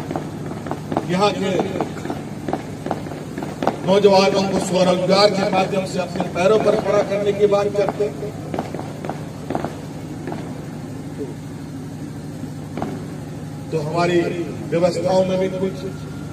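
A man speaks into a microphone over loudspeakers, in short bursts with pauses.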